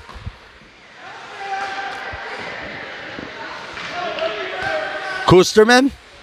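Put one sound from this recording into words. A crowd cheers and murmurs in a large echoing rink.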